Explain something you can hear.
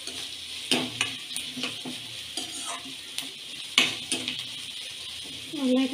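A metal spatula scrapes and clinks against a steel pan.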